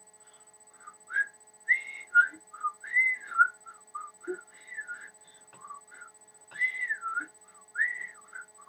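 A young woman whistles a tune close by.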